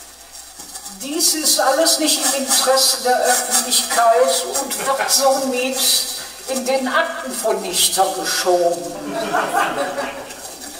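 An older man sings slowly into a close microphone.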